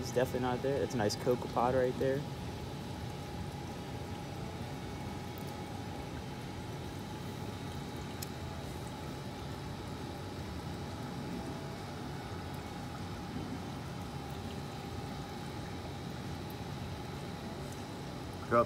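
Aquarium water hums and gurgles steadily.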